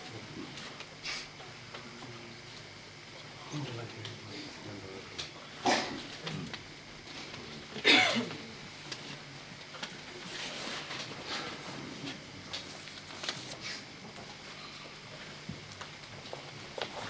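Cloth rustles as an elderly man handles it.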